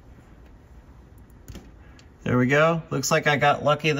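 A metal spring clip clicks as it is pried loose.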